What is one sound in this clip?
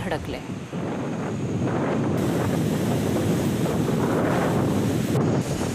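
Strong wind roars and gusts outdoors.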